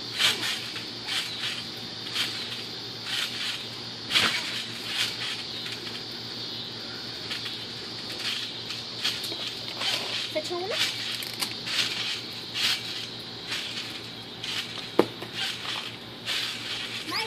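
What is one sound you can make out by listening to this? A trampoline mat thumps and creaks as a boy bounces on it.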